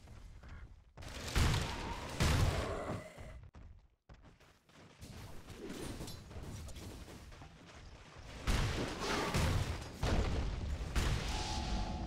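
Swords clash and spells crackle in a fantasy battle.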